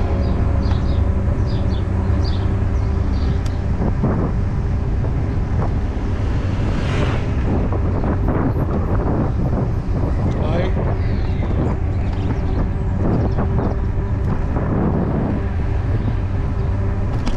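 Wind rumbles steadily and loudly across the microphone.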